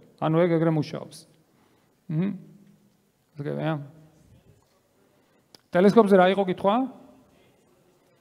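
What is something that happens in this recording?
A man speaks with animation through a microphone in a large echoing hall, in short bursts with pauses.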